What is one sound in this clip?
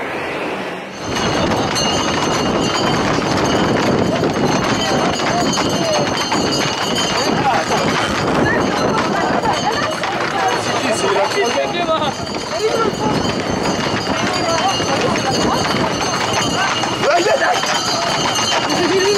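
A crowd of men shouts and chatters close by, outdoors.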